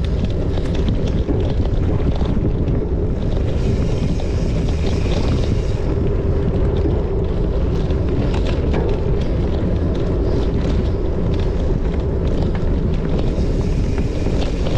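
Wind rushes and rumbles steadily against a helmet microphone.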